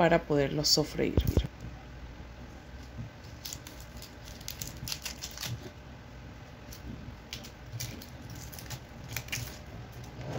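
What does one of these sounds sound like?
Dry onion skin crackles as it is peeled by hand.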